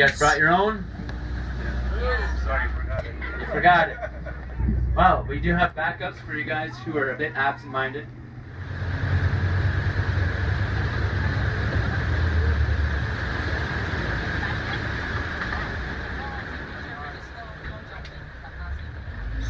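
A boat's motor hums steadily.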